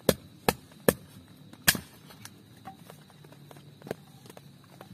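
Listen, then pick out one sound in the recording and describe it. Dry sticks snap and crack close by.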